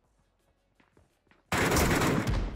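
Quick footsteps thud on the ground.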